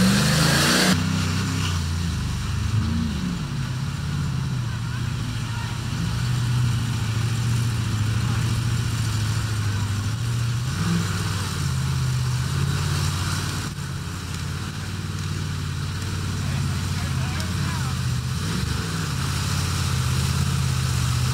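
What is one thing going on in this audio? Mud and water splash around a truck's wheels.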